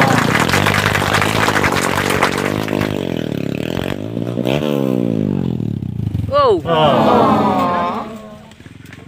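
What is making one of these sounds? A dirt bike engine revs hard and roars close by.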